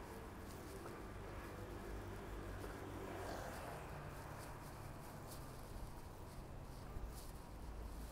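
A small car's engine hums as it drives slowly past on a street.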